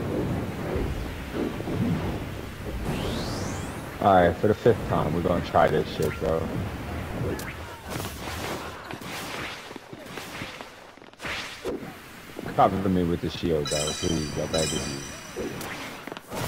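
A blade swishes through the air in quick slashes.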